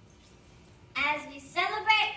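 A group of children sings together.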